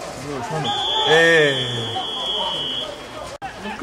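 A referee's whistle blows a long, steady blast.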